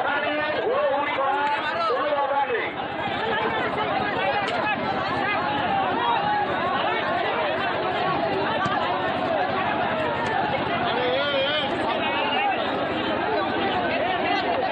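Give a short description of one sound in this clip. A large crowd of men shouts and clamours outdoors.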